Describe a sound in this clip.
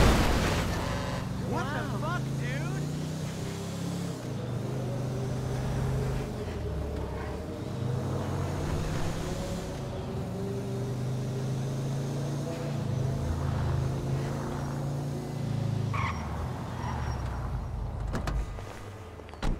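A car engine hums and revs as a car drives along a road.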